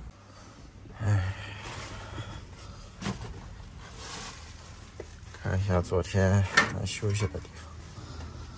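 Fabric rustles as a cloth cover is handled.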